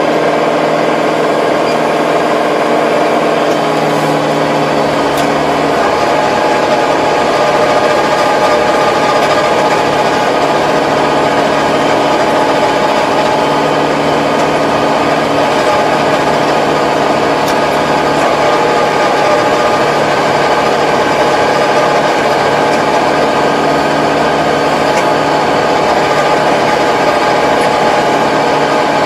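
A tractor engine drones steadily up close.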